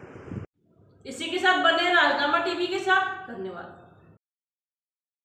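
A young woman speaks clearly into a microphone, like a news reader.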